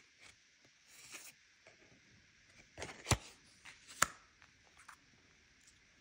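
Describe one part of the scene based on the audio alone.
Plastic cards and a phone click and tap as hands handle them.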